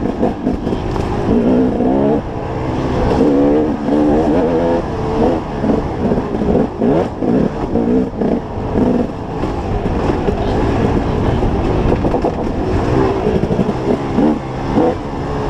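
Tyres crunch over dry dirt and rocks.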